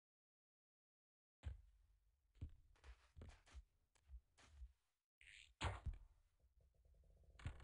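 A heavy wooden door swings open with a thud.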